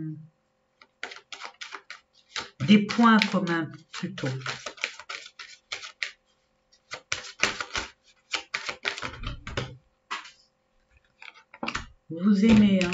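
Cards riffle and flick as a deck is shuffled.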